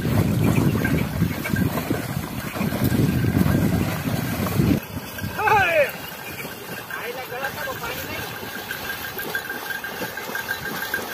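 Bullocks' hooves splash through shallow water.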